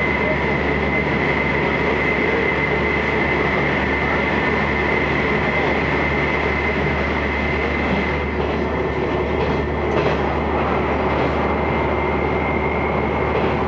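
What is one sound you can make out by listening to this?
A train rumbles steadily along the tracks with a constant droning hum.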